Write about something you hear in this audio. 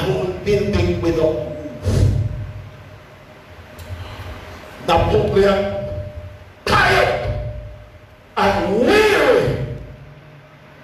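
An elderly man preaches with animation through a microphone and loudspeakers, in a reverberant room.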